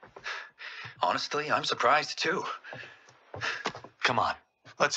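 A young man answers with a light laugh.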